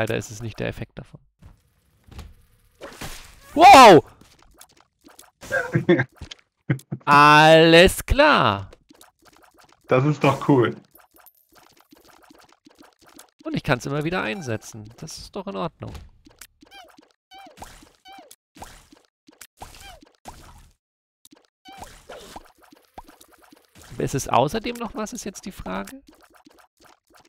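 Cartoonish shots pop and splat in quick bursts.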